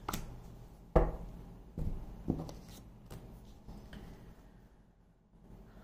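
Cards tap and shuffle in a woman's hands.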